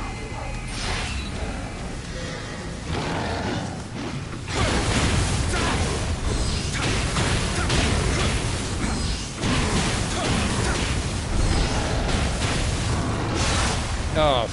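Blades clash and slash with sharp metallic hits.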